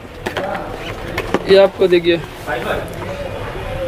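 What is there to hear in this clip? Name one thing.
A cardboard box rustles and taps as it is handled.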